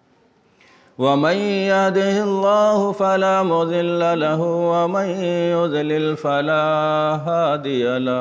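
A young man chants melodically into a microphone.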